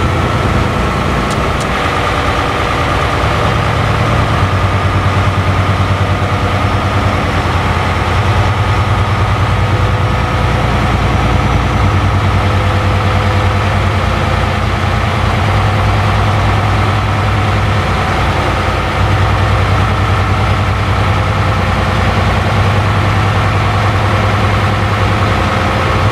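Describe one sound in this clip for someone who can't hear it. A truck engine drones steadily while driving on a highway.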